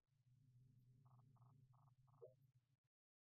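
A game scanner beeps in short, evenly spaced pulses.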